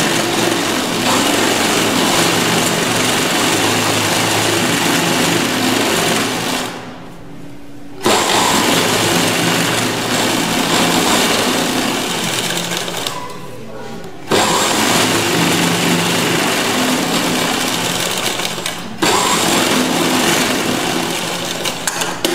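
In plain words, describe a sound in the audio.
A sewing machine whirs steadily as it stitches, pausing briefly now and then.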